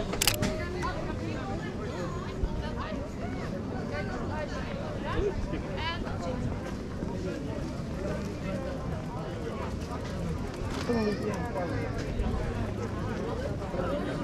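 A crowd of people chatters in a busy outdoor market.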